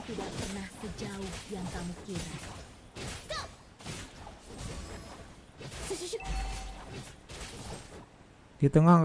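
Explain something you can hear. Game combat effects clash and burst.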